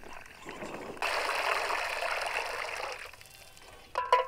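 Water splashes loudly through a strainer into a basin.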